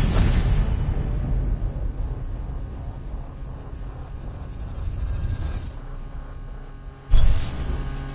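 A sports car engine roars at high revs.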